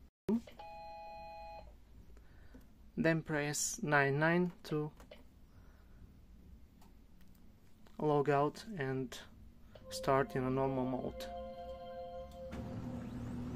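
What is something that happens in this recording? A printer's keypad beeps with short electronic tones.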